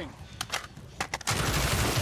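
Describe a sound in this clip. A gun magazine clicks into place during a reload.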